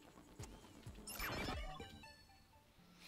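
An electronic tone sounds briefly.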